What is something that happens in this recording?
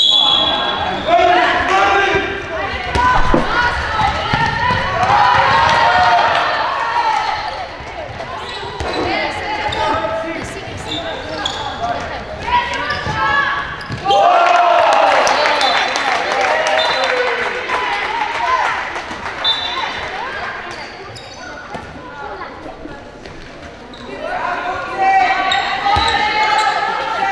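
Young girls shout and call out in an echoing sports hall.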